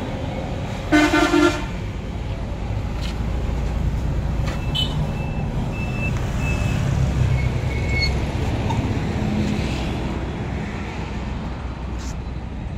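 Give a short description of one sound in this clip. A tractor engine idles nearby with a steady low rumble.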